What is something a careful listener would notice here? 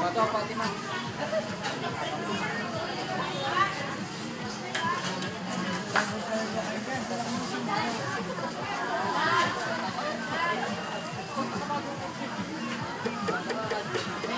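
Young riders chatter and call out at a distance outdoors.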